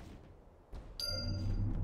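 A bright magical chime rings out.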